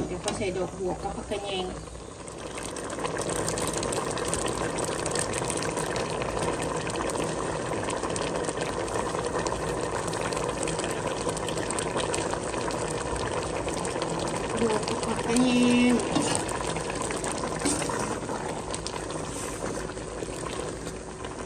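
A ladle scrapes and clinks against a metal pot.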